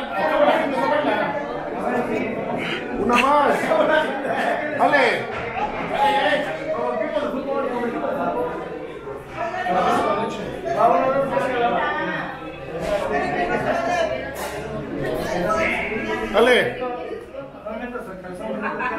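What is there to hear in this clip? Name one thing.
Several men talk and laugh loudly nearby in a lively crowd.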